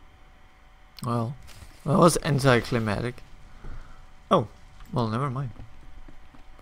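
A young man talks with animation, close to a headset microphone.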